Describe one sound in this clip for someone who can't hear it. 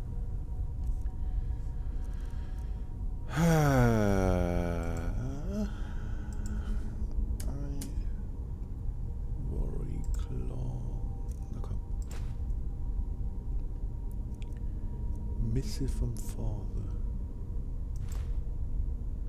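Menu clicks tick softly as items are selected.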